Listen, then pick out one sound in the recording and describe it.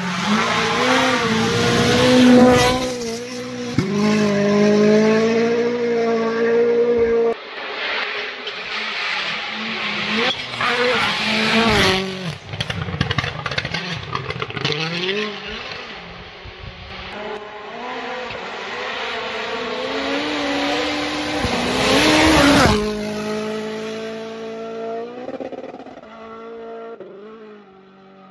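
A turbocharged four-cylinder rally car races past at full throttle on a snowy road, shifting gears.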